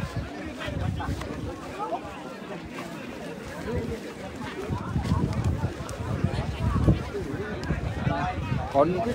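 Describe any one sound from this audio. Several men shout and talk excitedly outdoors.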